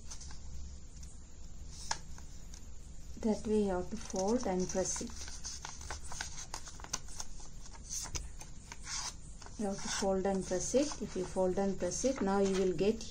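Paper crinkles and rustles as it is folded by hand.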